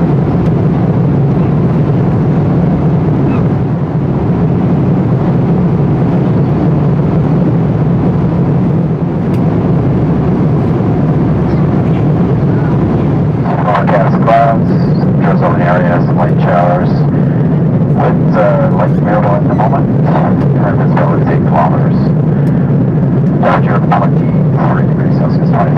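Jet engines drone steadily inside an aircraft cabin.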